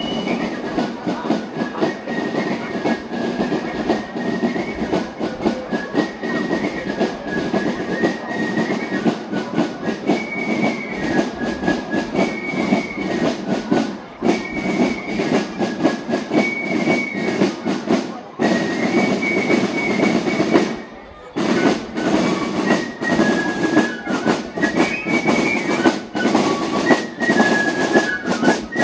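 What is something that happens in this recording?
A brass marching band plays a lively march outdoors.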